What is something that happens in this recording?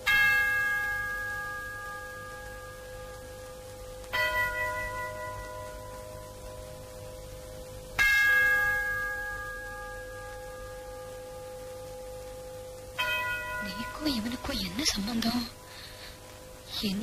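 A bell strikes and slowly rings away, again and again.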